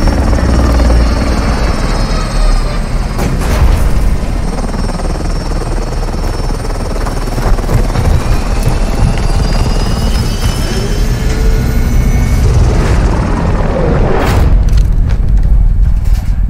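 A helicopter's rotor thumps and roars close by.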